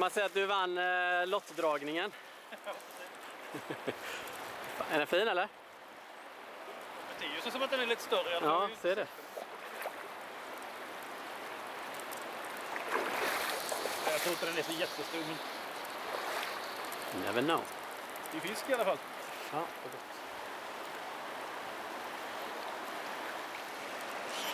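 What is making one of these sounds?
A river rushes and burbles over rocks close by.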